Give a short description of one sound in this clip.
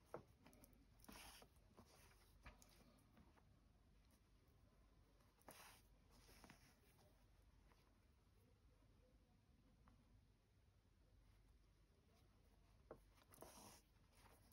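Thread pulls through cloth with a faint swish.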